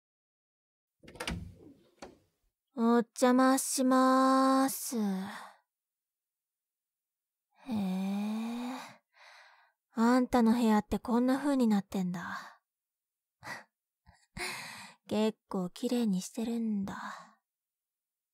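A young woman speaks expressively, close to a microphone.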